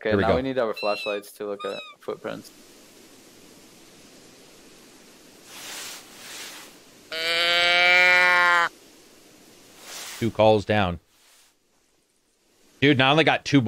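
A young man talks casually through a microphone.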